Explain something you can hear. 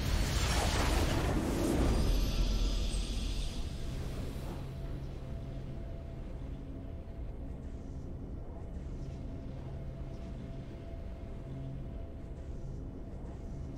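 A triumphant victory fanfare plays.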